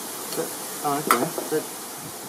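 Plastic parts click and snap together.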